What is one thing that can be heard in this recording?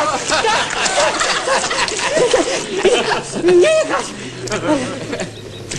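Water and mud splash as a man wades through a deep puddle.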